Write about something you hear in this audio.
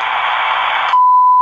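A radio set sounds a short, steady beep.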